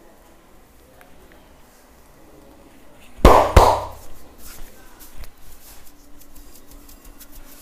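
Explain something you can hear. Hands rub and knead skin softly.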